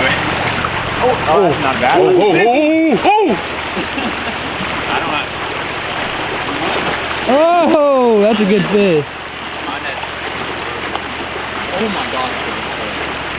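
A stream rushes and burbles over rocks.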